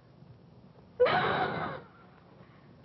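A woman screams.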